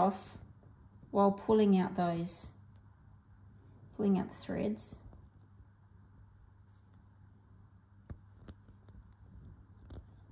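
Thread rasps softly as it is pulled through fabric.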